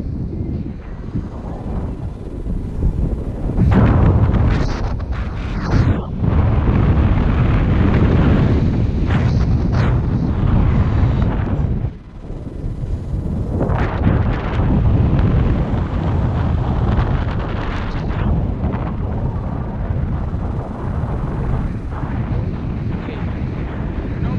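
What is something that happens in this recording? Strong wind roars and buffets against a microphone outdoors.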